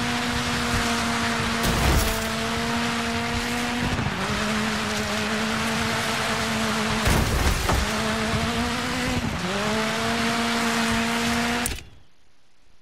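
A rally car engine roars at high revs, shifting gears as it races.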